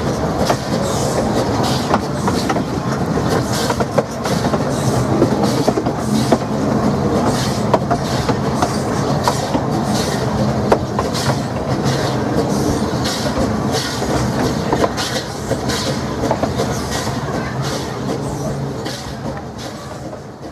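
A steam locomotive chuffs in a steady rhythm.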